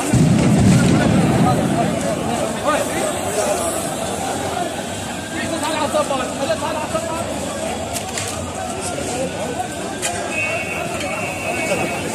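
A crowd of men talk and shout nearby outdoors.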